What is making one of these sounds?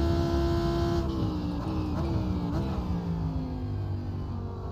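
A racing car engine drops in pitch with several quick gear downshifts.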